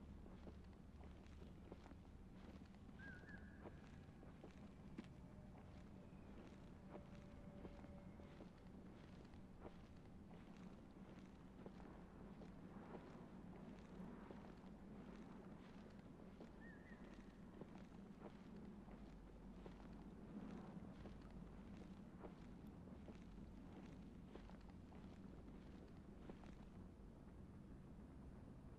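Footsteps crunch steadily through dry leaves and brush.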